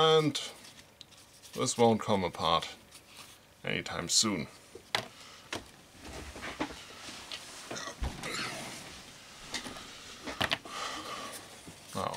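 Hands handle and rub a leather strap.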